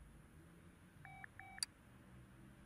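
Two short electronic beeps sound.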